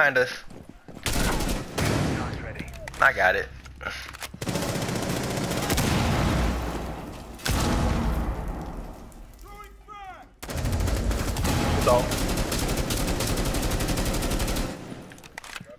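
Rapid gunshots fire in short bursts.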